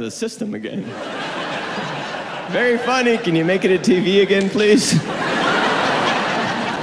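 An audience cheers and applauds.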